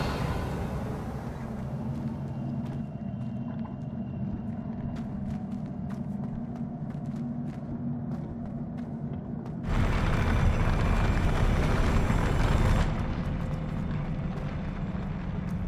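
Footsteps run quickly across a hard floor.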